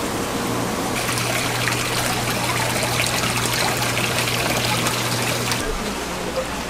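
Water bubbles and splashes in a tank.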